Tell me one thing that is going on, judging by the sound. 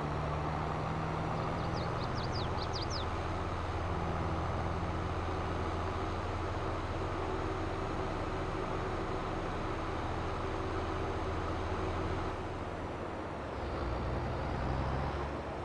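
A tractor engine drones steadily as it drives along, easing off briefly before picking up again.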